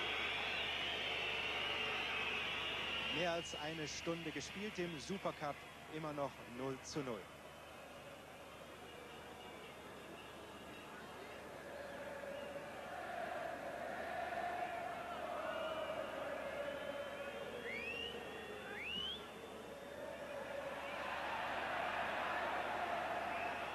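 A large crowd murmurs and cheers across a stadium.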